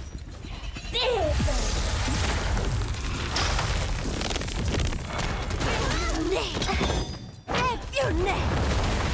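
Magic spells burst and boom.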